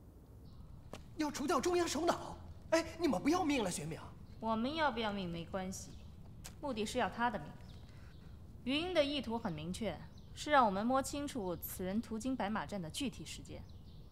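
A woman speaks calmly and firmly.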